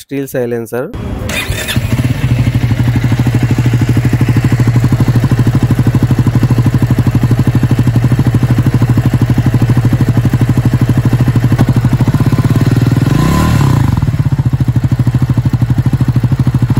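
A motorcycle engine starts up and idles with a deep, steady, throbbing rumble.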